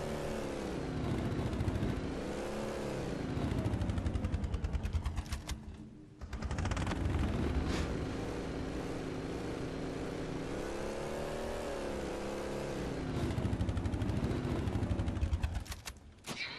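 A vehicle engine hums and revs steadily.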